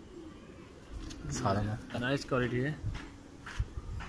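A pigeon flaps its wings against a hand.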